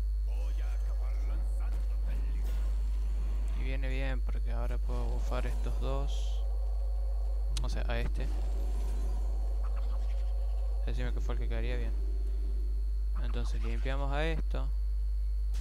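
Magical chimes and whooshing effects ring out as cards are played.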